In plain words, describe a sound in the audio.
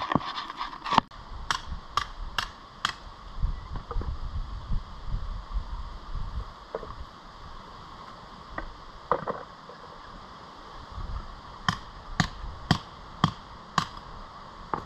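A hammer strikes rock with sharp metallic taps.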